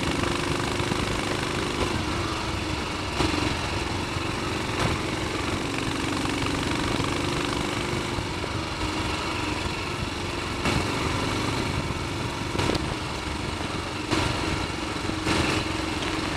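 A single-cylinder Royal Enfield Bullet 500 motorcycle thumps along at low revs.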